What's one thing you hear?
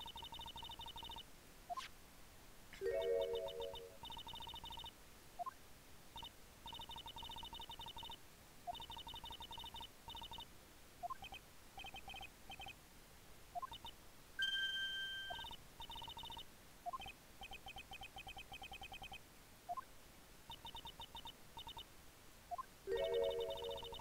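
Rapid beeping text blips tick out as video game dialogue types.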